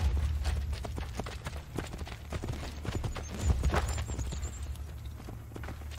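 Horse hooves clop on a dirt path.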